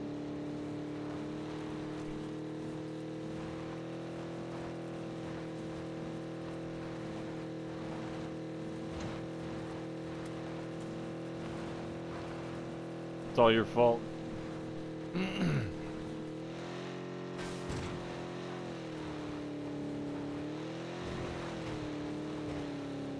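A car engine drones steadily, its pitch shifting as it drives.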